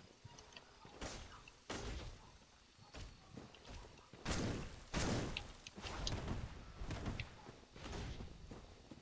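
Sword blows and thuds clash in short bursts.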